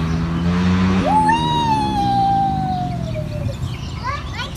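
A young girl squeals with delight nearby.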